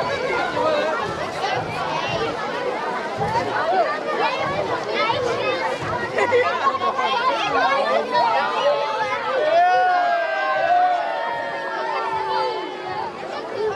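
Children shout and squeal in high voices.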